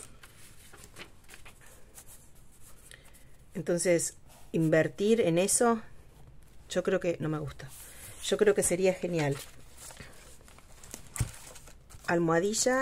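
Paper rustles and slides under hands close by.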